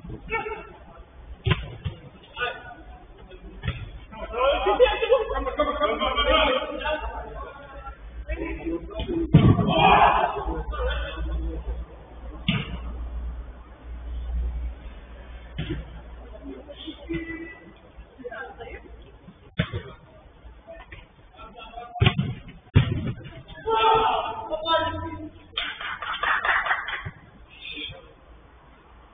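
Men shout and call out to each other during a football game.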